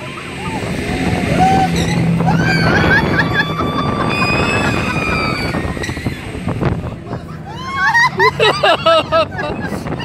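A young boy shouts and laughs close by.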